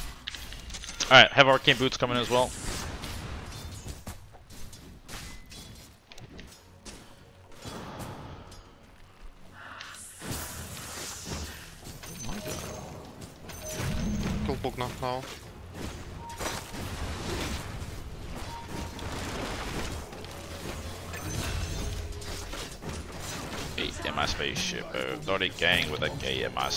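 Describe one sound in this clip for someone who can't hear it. A man talks with animation into a microphone, heard up close.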